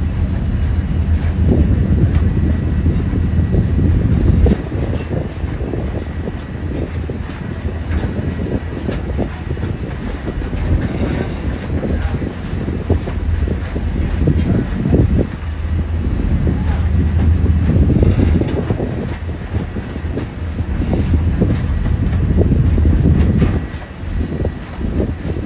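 Water rushes and churns in a boat's wake.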